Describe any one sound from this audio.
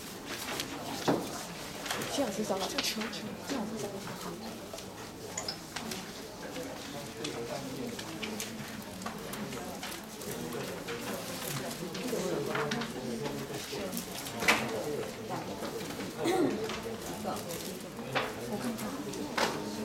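A crowd of people murmurs and chatters in a large room.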